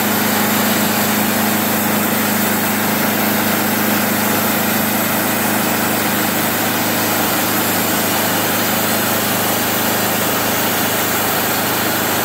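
A sawmill engine runs with a loud, steady drone.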